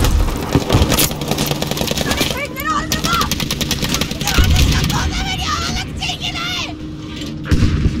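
Explosions boom with deep, heavy thuds.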